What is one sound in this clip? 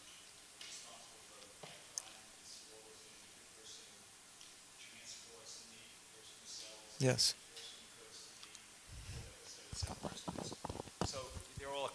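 A man speaks calmly and slowly into a microphone.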